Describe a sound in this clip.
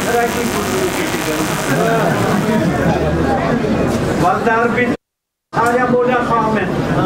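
A man recites in a loud, chanting voice through a microphone, echoing in a hall.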